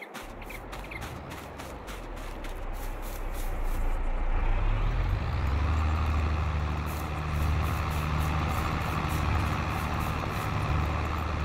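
A tractor engine rumbles steadily and grows louder as it draws near.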